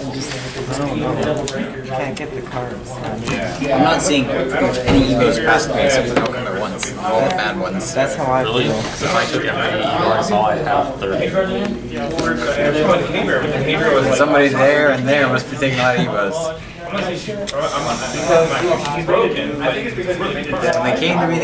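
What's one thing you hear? Playing cards slide and flick against each other as they are shuffled by hand.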